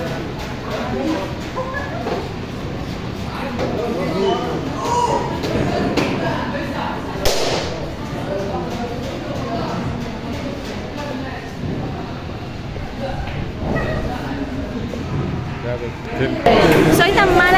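Young men and women talk and laugh nearby in a lively room.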